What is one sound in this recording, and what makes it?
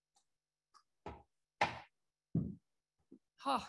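Footsteps thud on a floor as a woman walks up.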